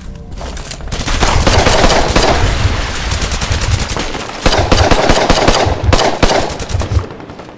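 A pistol fires sharp shots close by.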